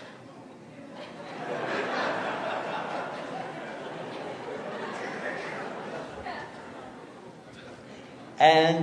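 A crowd laughs and chuckles.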